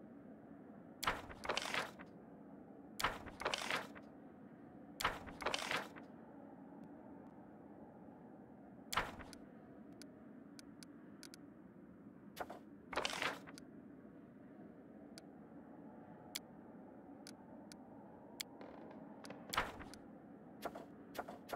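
Game menu sounds swish and click as cards and panels change.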